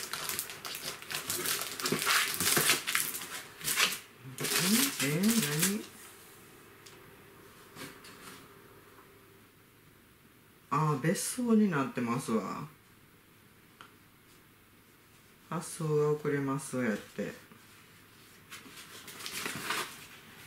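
Plastic packaging rustles and crinkles as it is opened.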